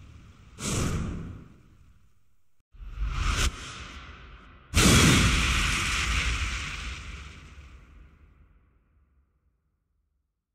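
A loud whooshing blast booms and fades away.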